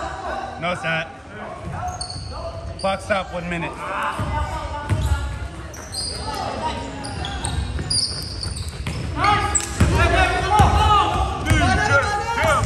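Sneakers squeak sharply on a hard floor in an echoing hall.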